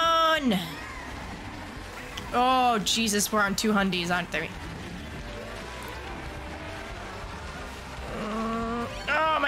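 Electronic racing game sound effects chime and swoop.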